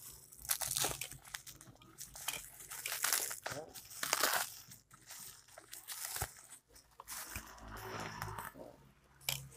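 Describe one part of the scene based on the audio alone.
A plastic bag rustles and crinkles as hands rummage through it.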